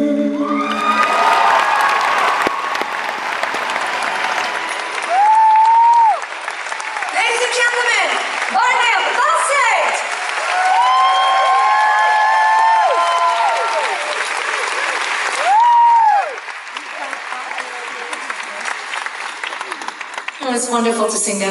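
A crowd cheers and screams.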